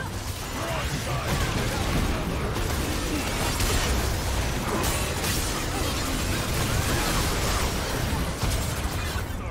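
Magic spells crackle and blast in quick succession.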